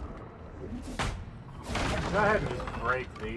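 Wood cracks and splinters as a pallet is smashed.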